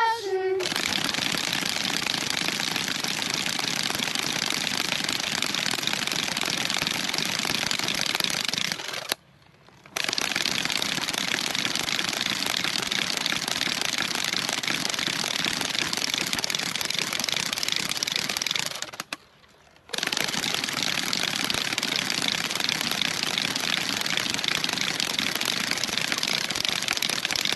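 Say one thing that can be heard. Several wooden ratchets rattle loudly and rapidly.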